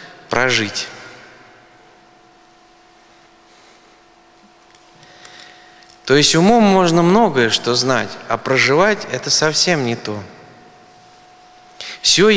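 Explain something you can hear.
A man speaks calmly into a microphone in an echoing hall, with pauses.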